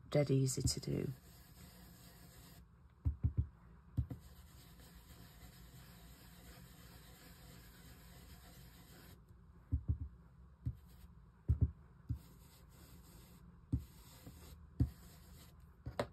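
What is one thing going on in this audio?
A foam dauber taps and dabs softly on paper.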